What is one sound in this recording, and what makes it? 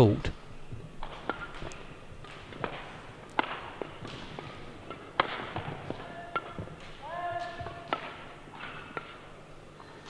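A shuttlecock is struck sharply back and forth by rackets.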